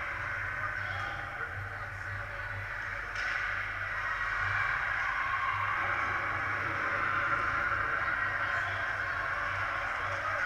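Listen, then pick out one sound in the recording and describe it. Ice skates scrape across the ice in a large echoing rink.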